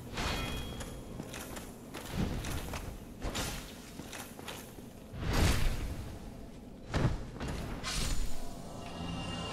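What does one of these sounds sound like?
Swords clash and strike armour in a fight.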